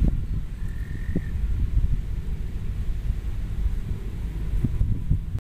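Wind rumbles and buffets steadily outdoors.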